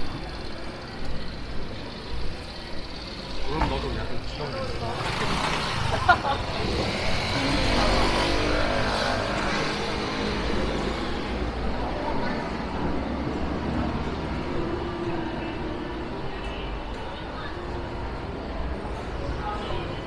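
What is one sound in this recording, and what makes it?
Street noise murmurs outdoors.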